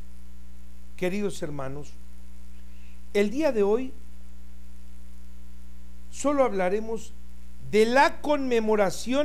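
An elderly man speaks calmly into a nearby microphone, in short phrases with pauses.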